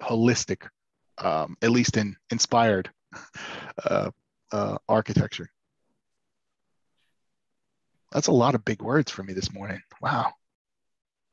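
A man talks calmly into a microphone, close by.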